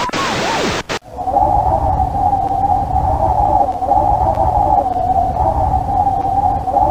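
Wind howls steadily over a stormy sea.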